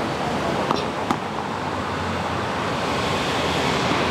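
A motor scooter rides past.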